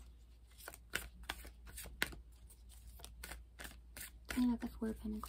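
Playing cards shuffle and riffle with soft repeated flicks.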